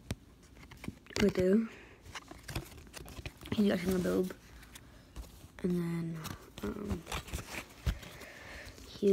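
Cards rustle and tap in hands.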